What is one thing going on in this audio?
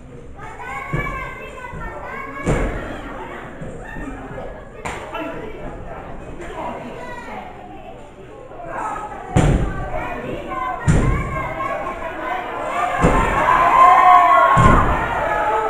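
Wrestlers slam heavily onto a ring mat with loud thuds.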